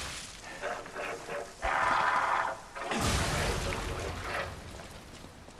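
A blade slashes and strikes in a fight.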